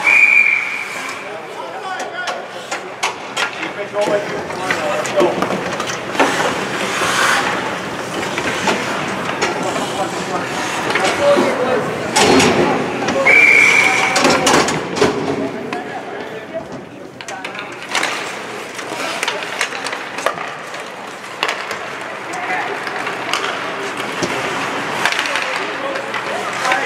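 Spectators chatter nearby in an echoing rink.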